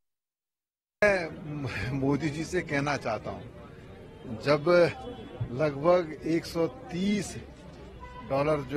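A man speaks calmly to a nearby microphone.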